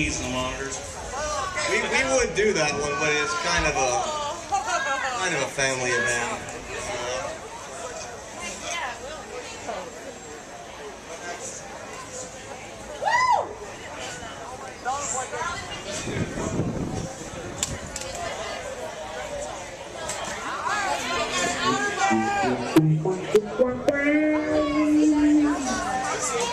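A man talks casually into a microphone over loudspeakers.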